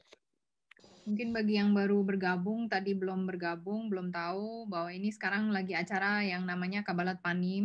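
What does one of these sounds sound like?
A woman sings clearly near a microphone.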